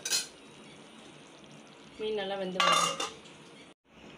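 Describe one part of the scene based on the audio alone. A metal lid clinks onto a pot.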